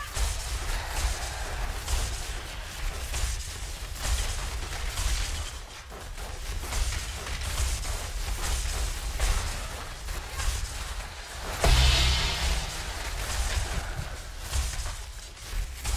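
Game spells crackle and burst in rapid bursts.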